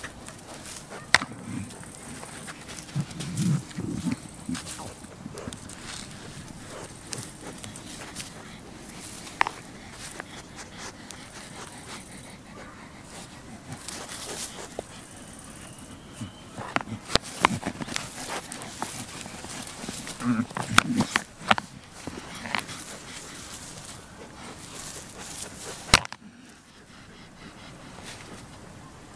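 Hooves scuff and scrape in dry sand.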